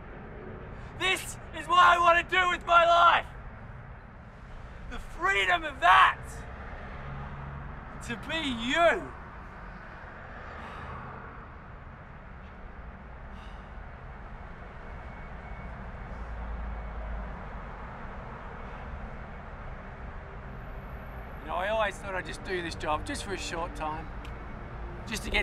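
A man shouts and yells out loudly into the open night air.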